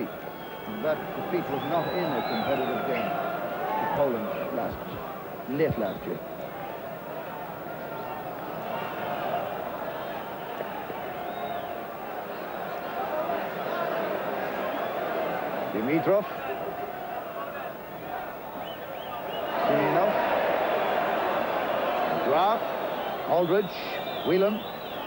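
A large stadium crowd roars and chants steadily, swelling louder near the end.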